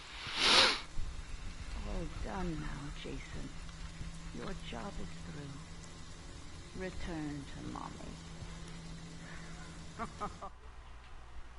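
A man talks casually into a microphone.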